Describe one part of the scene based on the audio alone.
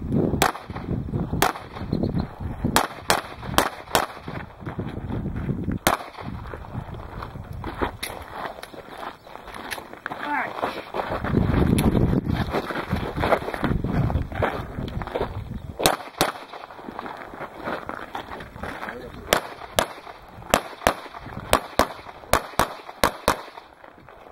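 Pistol shots crack loudly outdoors in quick bursts.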